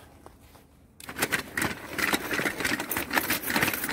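Tracks of a small robot crunch and grind over snowy ground.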